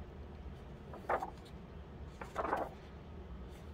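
Pages of a thick coloring book are turned and rustle.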